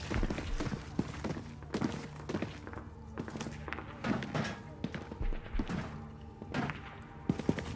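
Footsteps clank on a metal grate overhead.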